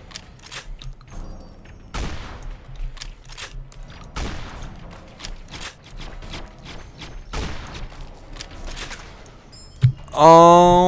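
Rifle shots crack out sharply, one after another.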